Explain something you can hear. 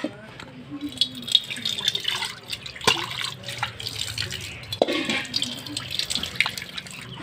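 Water pours from a tap and splashes into a metal pan.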